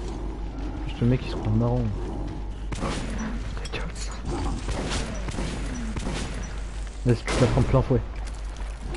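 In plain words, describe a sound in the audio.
A monster growls and snarls loudly.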